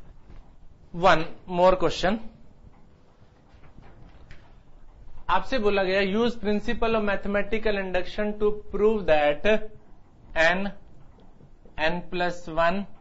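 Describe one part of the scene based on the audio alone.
A middle-aged man speaks calmly and clearly into a clip-on microphone.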